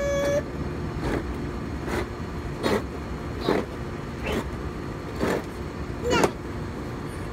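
A small child shouts in short rhythmic bursts close by.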